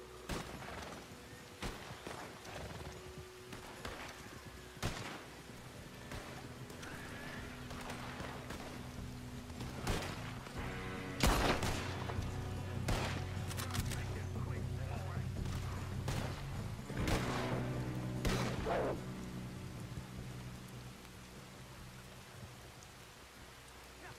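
Horse hooves thud on snow.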